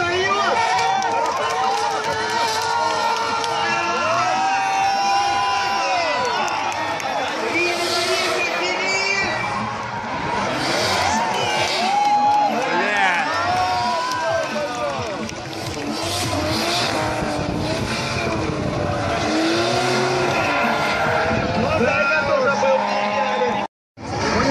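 Tyres screech on tarmac as cars slide.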